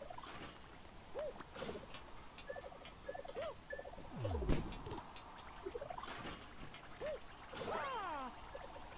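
Cartoonish video game sound effects boing and chirp in quick bursts.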